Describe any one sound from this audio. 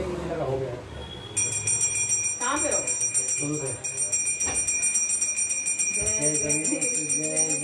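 A man chants prayers aloud, close by.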